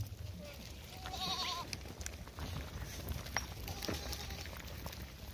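Goats bleat now and then.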